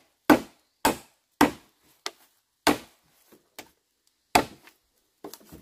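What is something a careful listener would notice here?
A machete chops into bamboo with sharp blows.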